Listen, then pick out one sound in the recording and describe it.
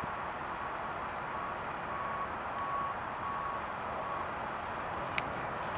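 A jet airliner roars as it takes off and climbs away.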